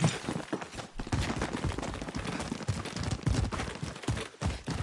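Footsteps run over grass and dirt outdoors.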